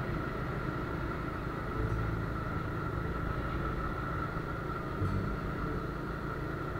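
Wind rushes and rumbles against the microphone while moving along a road.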